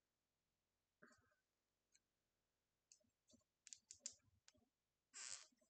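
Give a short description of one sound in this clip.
Small plastic and metal parts click and rattle up close.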